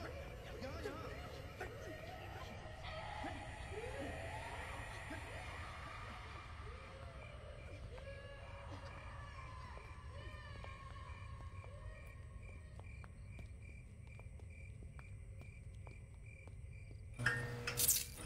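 Footsteps shuffle slowly on a hard floor.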